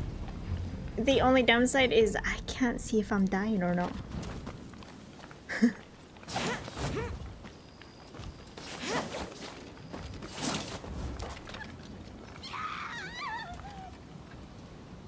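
A young woman talks casually into a microphone.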